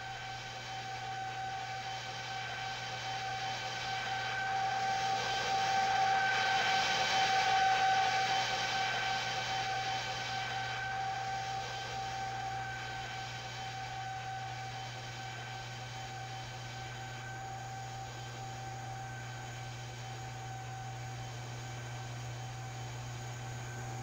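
A jet engine roars as an airliner takes off, swelling loudest during the climb and then slowly fading.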